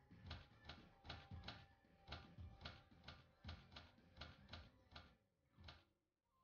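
Short game menu clicks sound as the selection moves.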